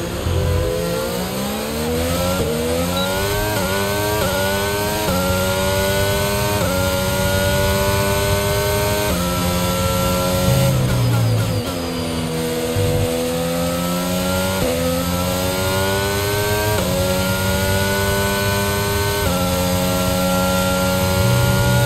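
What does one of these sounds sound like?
A racing car engine screams at high revs, rising in pitch through each gear and dropping as it shifts up.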